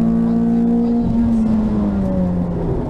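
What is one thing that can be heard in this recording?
A rally car engine's pitch drops sharply at a gear change, then climbs again.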